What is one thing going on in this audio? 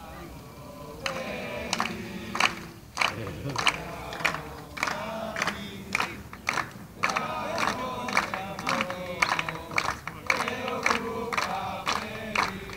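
A group of players claps in a steady rhythm.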